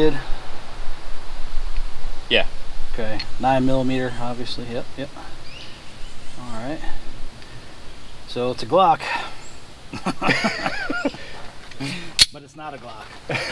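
A metal gun action clicks and snaps as a pistol is handled.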